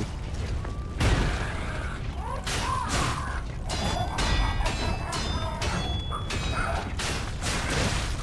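Metal weapons clash with sharp, ringing impacts.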